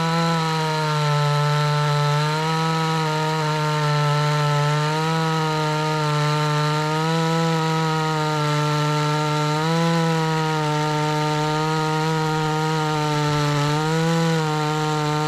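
A chainsaw engine drones loudly, its pitch dipping as it cuts through a log.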